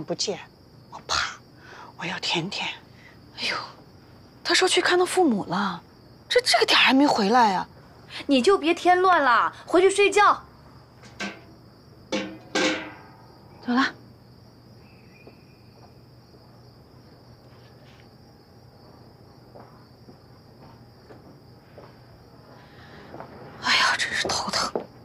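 A middle-aged woman answers sharply.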